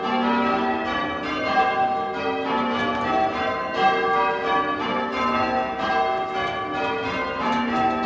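Church bells ring in quick succession, each stroke ringing on and overlapping the next.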